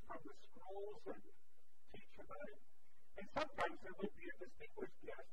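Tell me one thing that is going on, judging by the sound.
A middle-aged man speaks calmly and clearly into a microphone in a large room.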